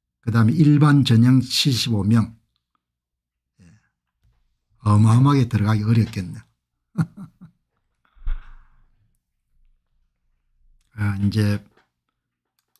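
An older man speaks calmly into a microphone, in short bursts with pauses.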